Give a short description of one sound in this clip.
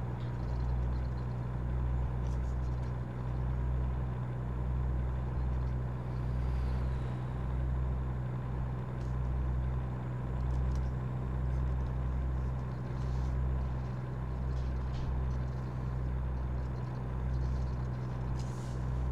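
A truck engine hums steadily with a low drone.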